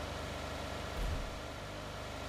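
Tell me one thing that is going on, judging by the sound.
A car bumps with a dull thud.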